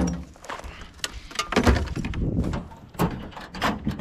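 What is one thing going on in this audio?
A metal toolbox lid thuds shut.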